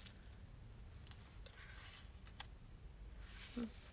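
Paper is pressed and rubbed down by hand.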